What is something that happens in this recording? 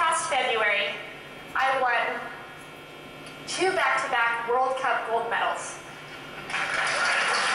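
A young woman speaks calmly through a loudspeaker.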